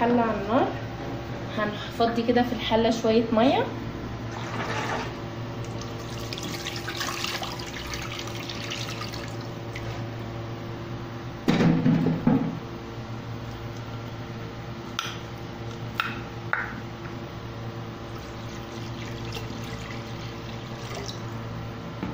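Water bubbles and simmers in a pot.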